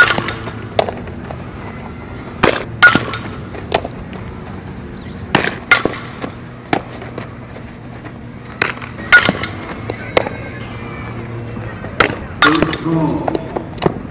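A softball smacks into a leather glove again and again.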